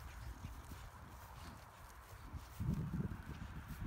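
Dogs run across the grass.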